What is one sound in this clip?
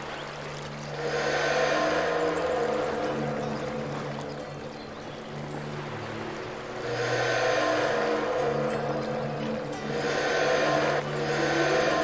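A bright magical shimmer sweeps by.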